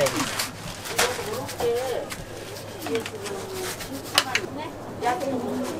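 Gloved hands rustle and squeeze through loose shredded cheese.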